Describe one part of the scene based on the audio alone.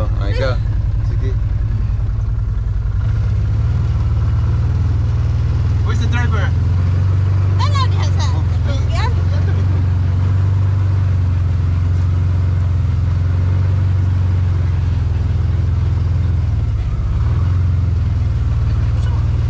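An off-road vehicle's engine rumbles steadily up close.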